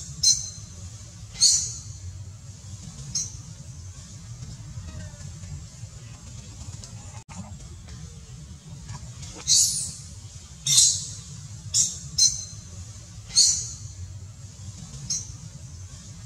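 A baby monkey squeals in short, high bursts.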